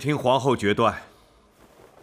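An elderly man speaks solemnly.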